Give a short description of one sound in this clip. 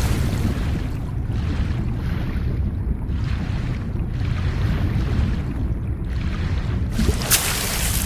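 Water gurgles and bubbles in a muffled rush, as if heard underwater.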